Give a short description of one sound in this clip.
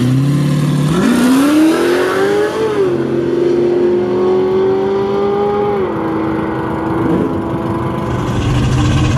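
A car engine revs up loudly and roars as the car speeds away.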